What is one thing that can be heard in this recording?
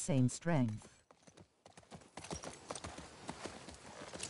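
A horse's hooves clop slowly on the ground.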